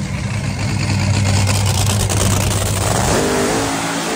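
A dragster engine idles with a deep, loud rumble.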